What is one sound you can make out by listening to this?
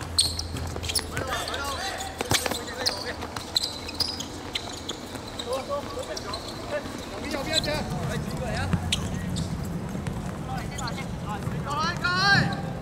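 Men shout and call out to each other.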